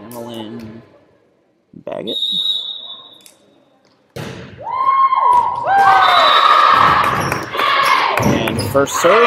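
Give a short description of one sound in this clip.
A volleyball thumps as a player hits it.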